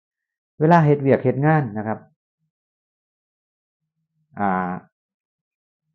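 A middle-aged man speaks calmly close by, in short phrases with pauses.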